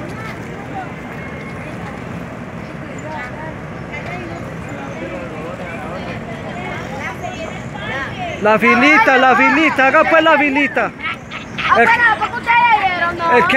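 A crowd of children chatter outdoors.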